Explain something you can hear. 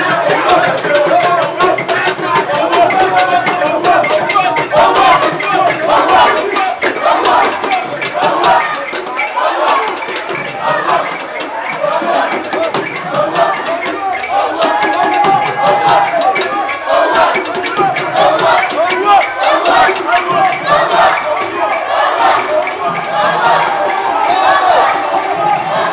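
A crowd of young people shouts and cheers loudly close by.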